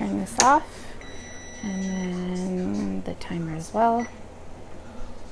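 An electronic stove beeps.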